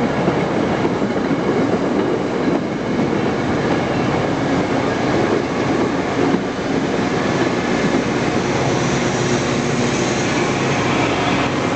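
A passenger train rolls past close by, its wheels rumbling and clattering on the rails.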